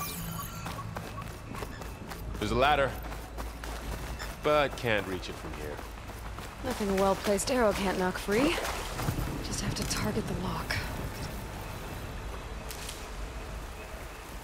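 Footsteps run over grass and undergrowth.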